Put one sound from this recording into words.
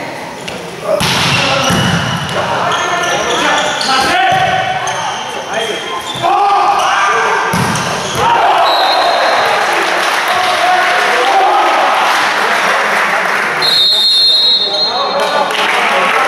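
Players shout and cheer loudly in an echoing hall.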